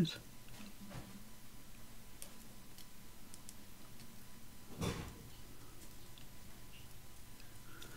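Tweezers tap and click softly against a small tin on a tabletop.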